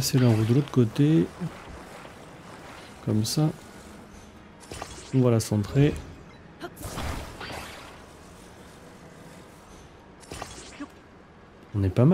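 Heavy parts clunk together with a bright magical chime.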